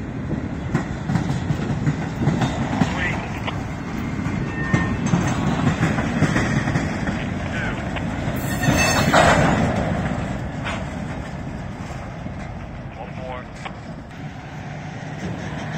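Freight cars rumble and clatter steadily along the rails close by.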